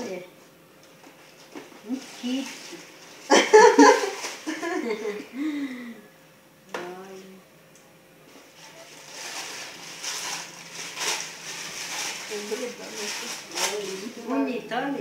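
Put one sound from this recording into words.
Wrapping paper rustles and crinkles as a gift is unwrapped.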